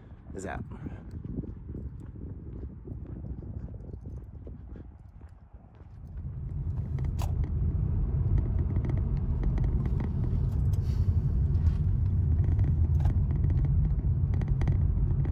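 A car drives along a road with a low, steady rumble.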